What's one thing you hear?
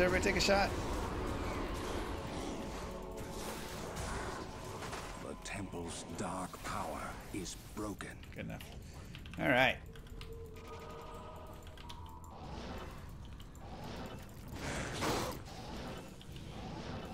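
Game combat sounds clash and crackle with spell effects.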